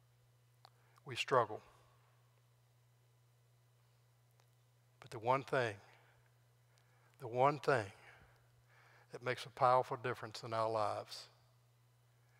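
An elderly man speaks with emphasis through a microphone, in short bursts with pauses.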